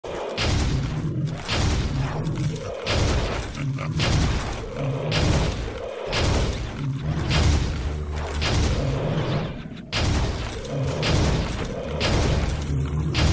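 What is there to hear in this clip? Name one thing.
Magic blasts whoosh and crackle again and again in quick bursts.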